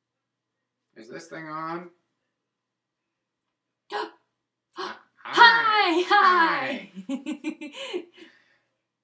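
A man speaks in a silly, animated puppet voice, close by.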